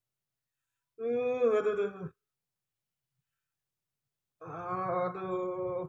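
A man moans in long, drawn-out cries close by.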